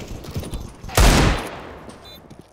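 A pistol fires a loud, echoing shot.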